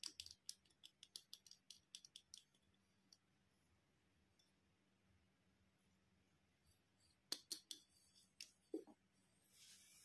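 A toy drill clicks and whirs.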